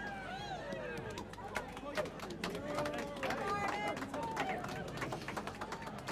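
A crowd cheers and shouts excitedly nearby.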